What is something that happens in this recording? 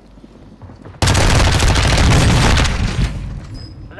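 A gun fires in a rapid, loud burst.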